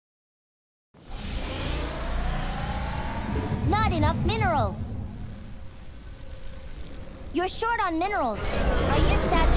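Electronic game sounds chirp and whoosh over a low rumble.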